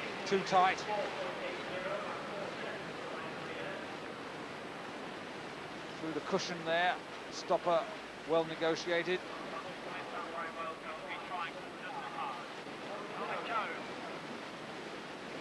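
Whitewater rushes and roars steadily.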